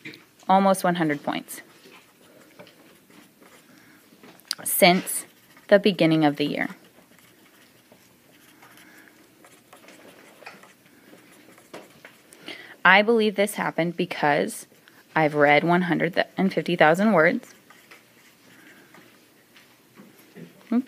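A marker squeaks faintly as it writes on paper.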